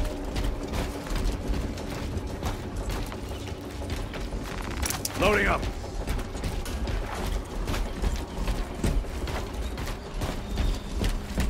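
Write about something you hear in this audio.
Heavy armoured footsteps thud on soft ground.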